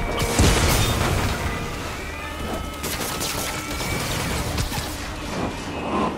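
Punches and kicks thud in a fight.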